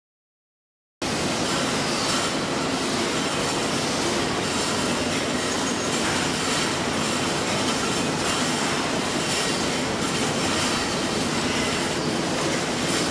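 Water sprays and hisses inside a washing machine.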